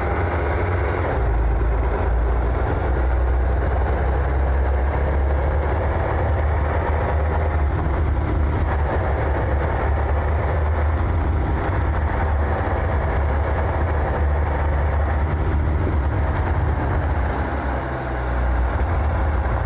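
A pickup truck's engine rumbles steadily as it drives.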